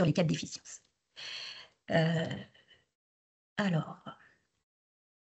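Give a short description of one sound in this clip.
A woman speaks calmly through an online call, in short bursts with pauses.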